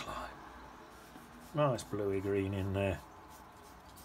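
A paintbrush softly strokes wet paint across paper.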